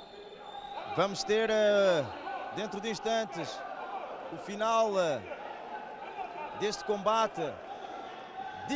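Spectators shout loudly in bursts.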